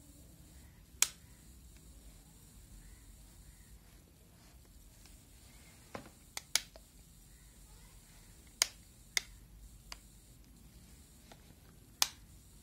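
Small plastic parts of a phone click and tap as they are handled.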